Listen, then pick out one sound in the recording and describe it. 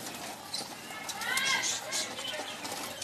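Pigeons coo softly.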